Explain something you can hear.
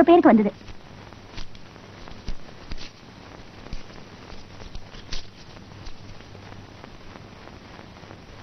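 Paper rustles softly in a man's hands.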